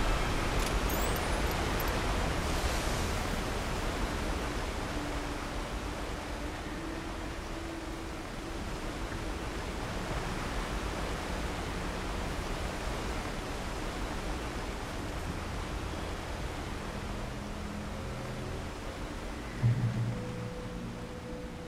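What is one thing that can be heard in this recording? Footsteps crunch over gravel and undergrowth.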